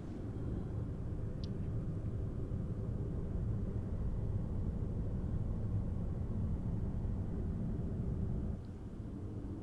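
Wind rushes past steadily in a low roar.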